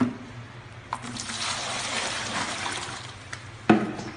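Water pours from a plastic jug into a plastic bucket.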